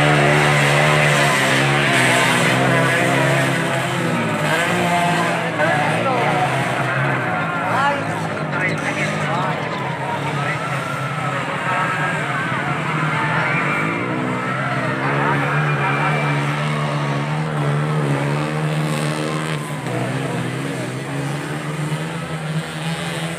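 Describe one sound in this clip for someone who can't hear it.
A large outdoor crowd chatters and shouts excitedly.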